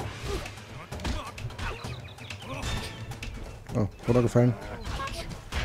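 Cartoon punches land with sharp smacks and thuds.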